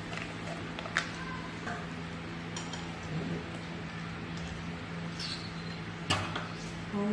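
A spoon clinks against a glass pot while stirring.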